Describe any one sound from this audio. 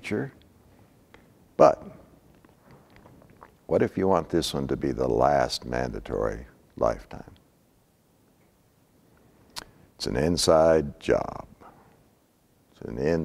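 An elderly man speaks calmly and clearly.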